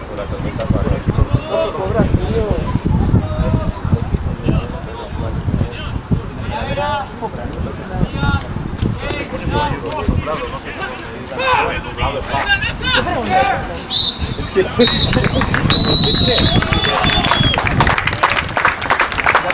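Young men shout and call to each other across an open field.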